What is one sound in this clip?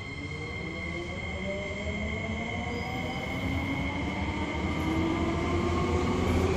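An electric subway train's motors whine from inside the car, rising in pitch as it speeds up.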